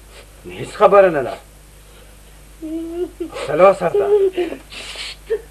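A woman wails and sobs loudly close by.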